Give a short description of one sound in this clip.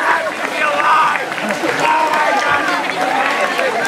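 A young man laughs loudly up close.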